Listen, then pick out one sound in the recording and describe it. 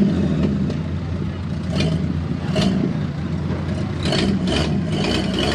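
A truck engine roars loudly as it drives through mud.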